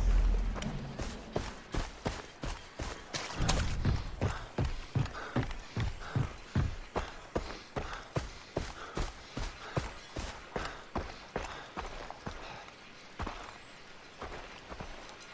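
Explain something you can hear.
Footsteps thud steadily on grass and dirt.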